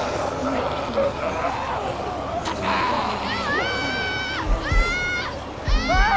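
A boy speaks anxiously.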